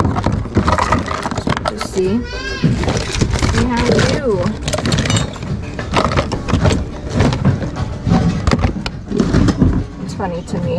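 Plastic toys clatter and rustle as a hand rummages through a bin.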